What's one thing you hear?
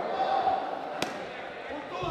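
A gloved punch lands with a sharp smack.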